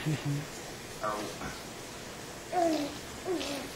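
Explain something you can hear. A baby babbles softly.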